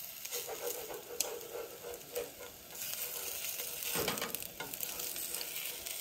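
Eggs and bacon sizzle and crackle in a frying pan.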